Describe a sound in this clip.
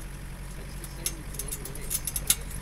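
A vehicle's frame rattles and clatters over bumps.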